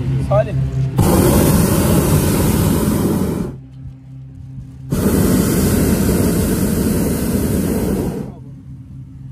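A gas burner roars loudly in bursts overhead.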